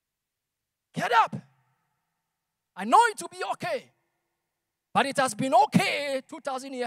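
A young man speaks with animation through a microphone and loudspeakers.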